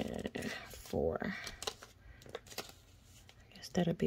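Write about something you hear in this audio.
Paper banknotes rustle softly as a hand handles them.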